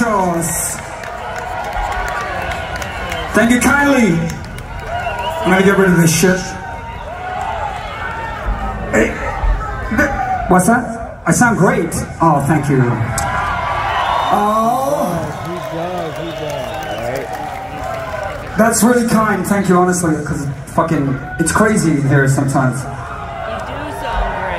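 A rock band plays electric guitars and drums.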